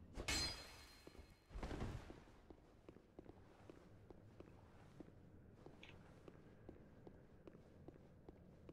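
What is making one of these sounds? Heavy armoured footsteps clank steadily on stone.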